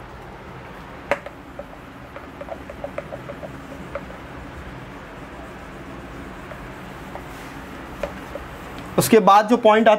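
A board eraser rubs across a whiteboard.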